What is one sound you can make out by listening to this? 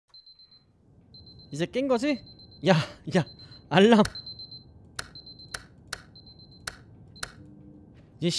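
Several alarm clocks beep in rapid bursts.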